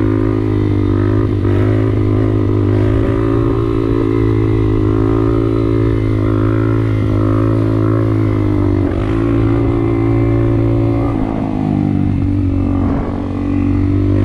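Wind buffets the rider.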